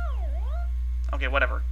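A short electronic tone swoops down and back up.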